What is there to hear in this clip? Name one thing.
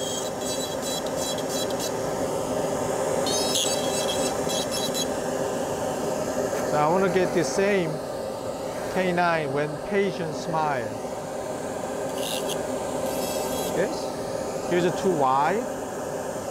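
A small rotary drill whirs as it grinds against teeth.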